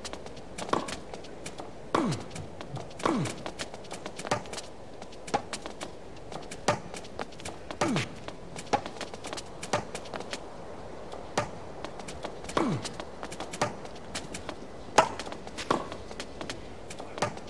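Tennis rackets strike a ball back and forth in a rally.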